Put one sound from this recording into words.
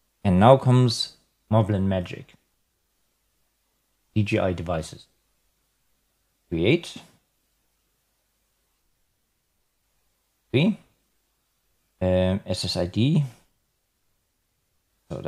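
A man talks calmly in short phrases, close to a microphone.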